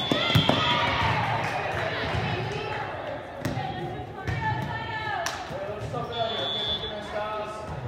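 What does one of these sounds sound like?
Young women shout and call out to each other.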